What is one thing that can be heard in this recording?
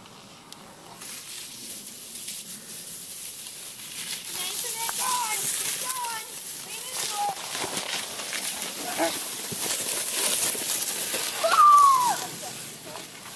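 A plastic sled hisses and scrapes over packed snow.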